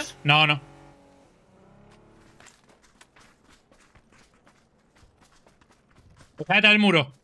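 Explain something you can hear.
Footsteps rustle quickly through grass.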